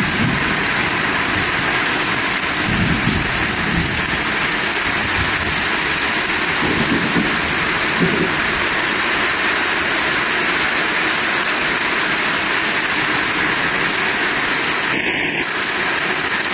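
Wind gusts through trees.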